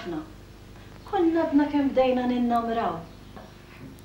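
A middle-aged woman speaks calmly up close.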